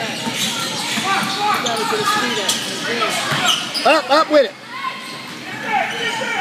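Players and onlookers call out and chatter in a large echoing gym.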